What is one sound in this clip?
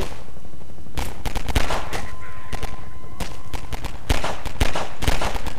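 A pistol fires sharp single shots that echo.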